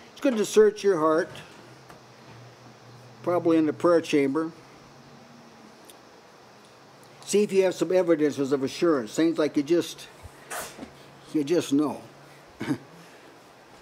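An elderly man speaks slowly and earnestly into a microphone, with pauses between phrases.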